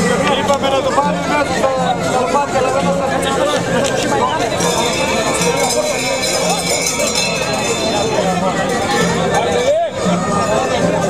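A crowd of men and women talks and shouts loudly outdoors, close by.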